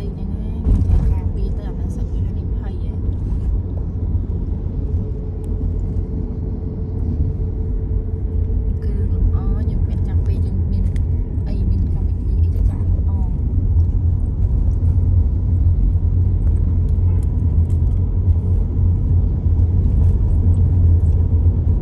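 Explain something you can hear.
Motorbike engines buzz nearby on a busy road.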